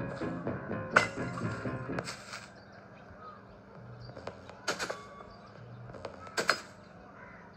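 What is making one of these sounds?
Short clanks and thuds of game sound effects play from a tablet speaker.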